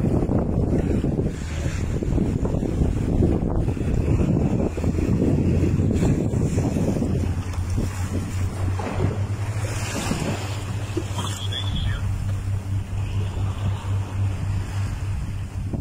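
Choppy water splashes against a small sailboat's hull.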